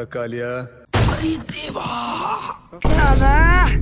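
A man cries out in alarm.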